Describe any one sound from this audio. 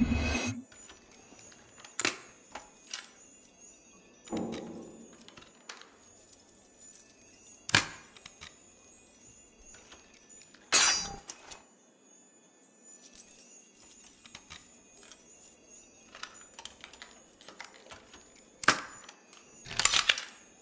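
Metal lock pins click into place one by one.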